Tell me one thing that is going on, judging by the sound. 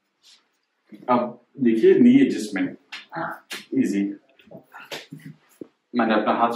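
A man speaks calmly and clearly nearby.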